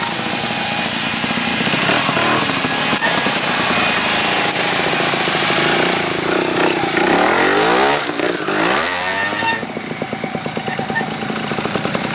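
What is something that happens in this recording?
A motorcycle engine idles and revs up and down in bursts.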